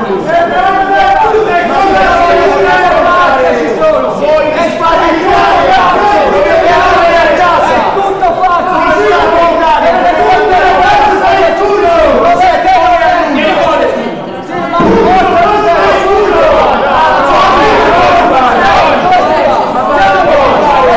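A man argues loudly and heatedly.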